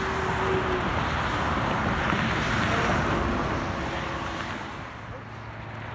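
Highway traffic roars past steadily close by.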